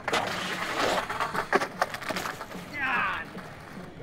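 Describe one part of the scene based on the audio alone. A skateboard clatters on concrete as a skater falls.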